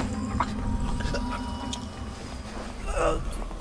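Clothing rustles as a limp body is lifted onto a shoulder.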